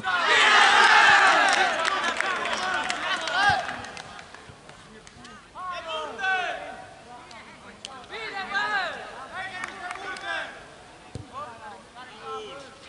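Young men shout and call out across an open outdoor pitch.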